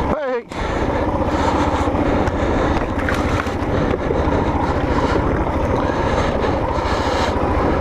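A motorcycle engine chugs and revs loudly close by.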